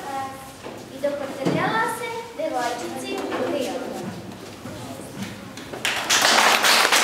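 Children speak into a microphone.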